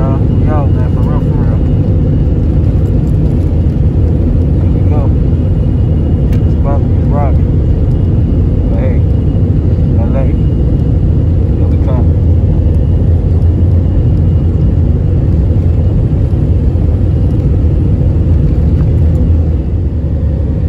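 A jet engine roars steadily as an airliner speeds down a runway.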